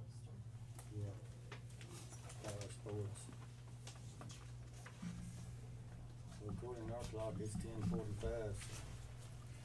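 A man speaks calmly in a quiet room, a little way off.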